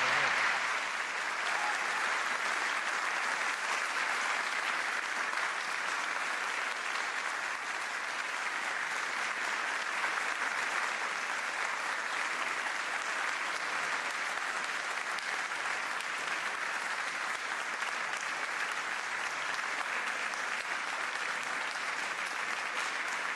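A large audience claps and applauds steadily in an echoing hall.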